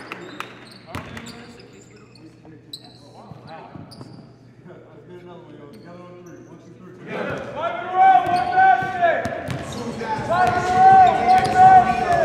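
A group of men talk and shout together in a huddle.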